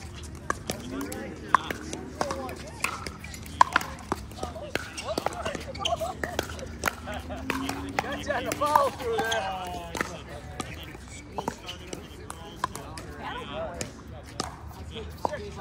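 Pickleball paddles pop sharply against a plastic ball, again and again.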